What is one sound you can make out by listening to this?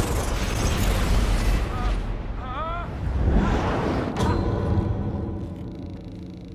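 A deep roar of rushing dust and debris rumbles loudly, then fades.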